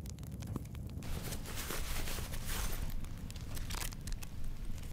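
Clothing rustles as a jacket is handled.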